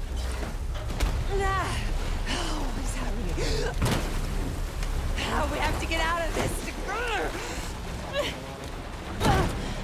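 A man shouts urgently, close by.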